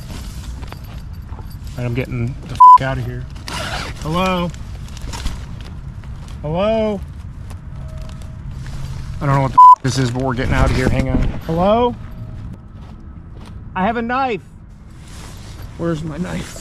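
Nylon tent fabric rustles against a man's jacket.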